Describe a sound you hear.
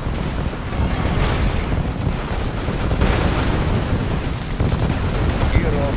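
Explosions and gunfire rumble and crackle in a battle.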